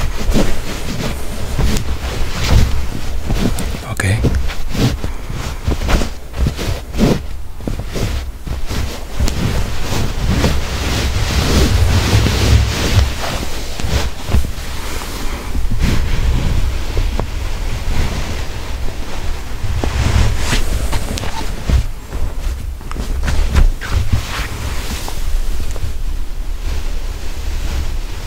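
Fabric rustles and brushes close by.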